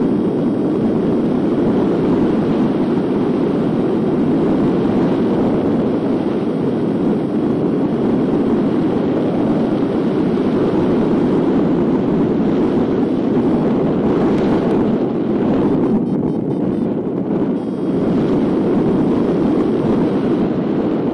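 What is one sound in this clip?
Strong wind rushes and buffets steadily past a hang glider in flight.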